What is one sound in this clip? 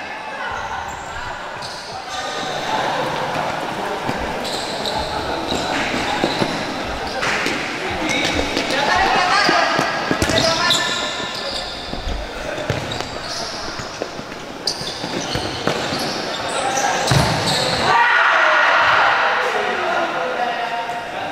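Shoes squeak on the hard floor.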